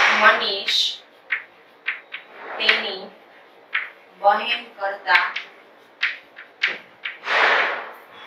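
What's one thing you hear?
A young woman speaks calmly and clearly, as if explaining.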